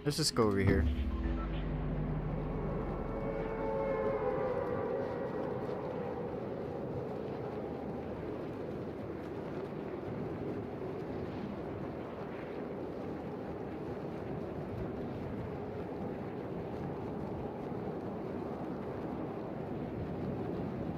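Wind rushes steadily past a falling figure.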